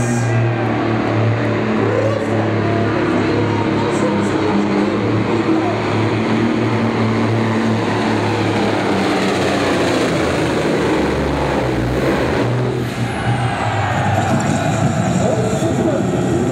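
A pulling tractor's engine roars loudly at full throttle, then eases off.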